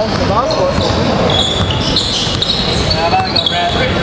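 A basketball is dribbled on a hardwood floor.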